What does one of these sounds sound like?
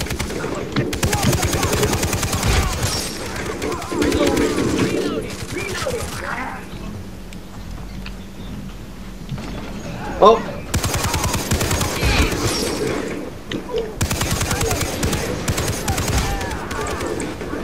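A mounted machine gun fires rapid, loud bursts.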